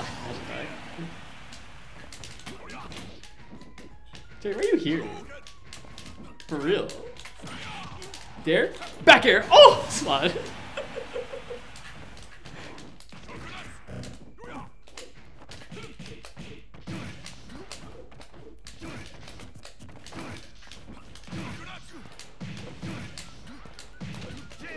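A man talks and exclaims excitedly into a microphone, close by.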